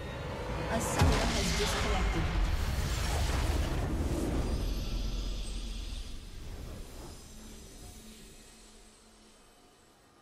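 A triumphant victory fanfare swells and then slowly fades away.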